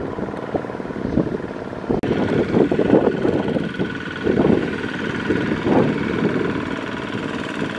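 A small tractor engine chugs loudly nearby.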